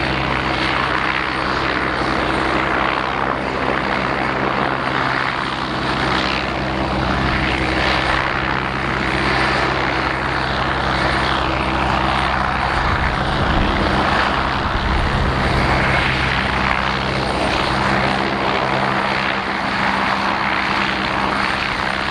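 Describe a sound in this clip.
A helicopter hovers nearby with a loud, steady whirring of rotor blades and engine whine.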